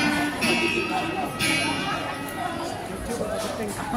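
A violin plays a melody through a loudspeaker.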